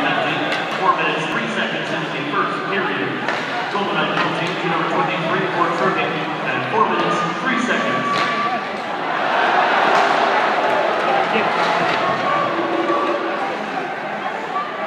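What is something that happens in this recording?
A crowd chatters and murmurs in a large echoing arena.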